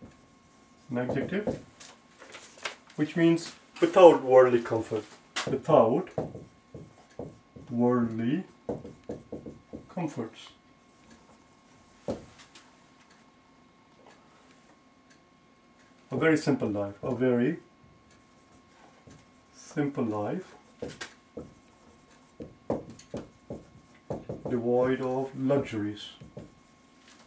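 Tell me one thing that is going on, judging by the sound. A man speaks calmly and clearly, close by, as if teaching.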